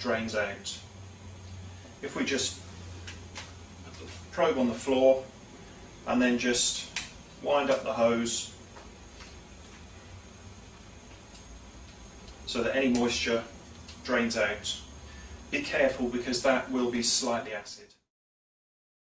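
A man speaks calmly and clearly, close by, explaining in short bursts.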